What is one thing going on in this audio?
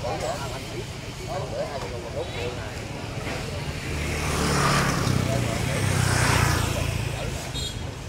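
Two men talk with each other nearby.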